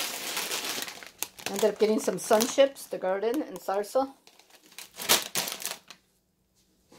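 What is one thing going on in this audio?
A crisp packet crinkles.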